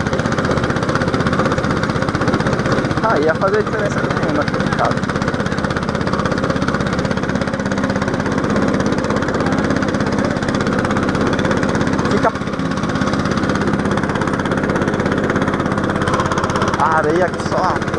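A go-kart engine buzzes loudly and steadily up close.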